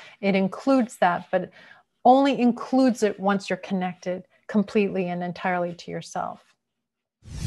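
A woman talks calmly and warmly, close to a microphone.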